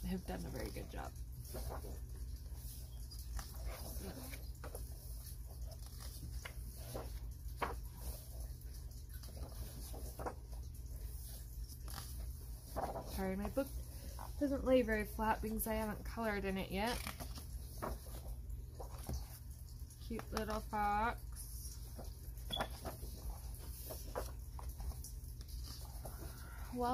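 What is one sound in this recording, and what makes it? Paper pages rustle and flip as a book is leafed through.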